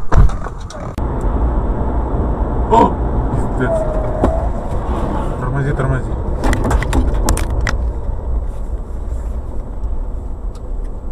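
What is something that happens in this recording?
A car engine hums and tyres roll steadily on a road.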